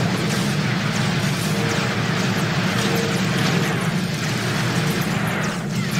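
A racing engine roars and whines steadily.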